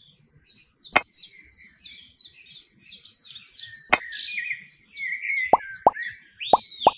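Small blocks tap softly onto sand.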